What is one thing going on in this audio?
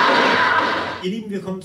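A man speaks into a microphone, heard through loudspeakers.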